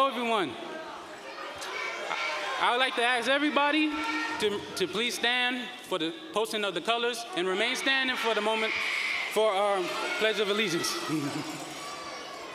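A young man reads out a speech through a microphone in a large hall.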